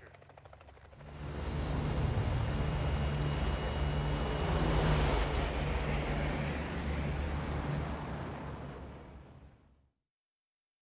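A propeller aircraft roars loudly as it flies past.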